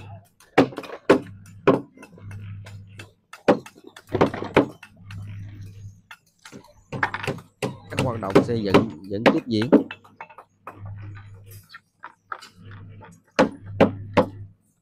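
A trowel taps and chips at bricks with sharp knocks.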